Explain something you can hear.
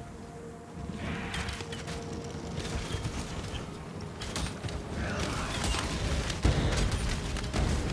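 Magic blasts and weapon strikes clash in a frantic fight.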